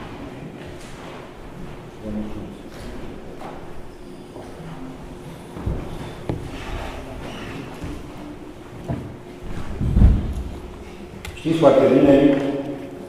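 An elderly man speaks through a microphone in an echoing hall.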